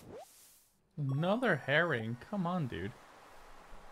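A video game plays a short, bright bouncing jingle.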